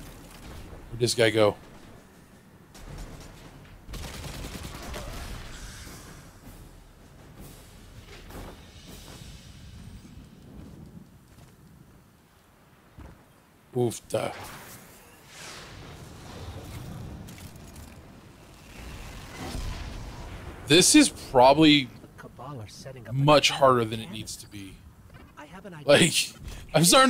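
A man talks into a microphone with animation, in short bursts.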